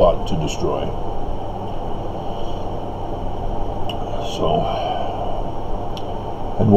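A middle-aged man speaks quietly, close to the microphone.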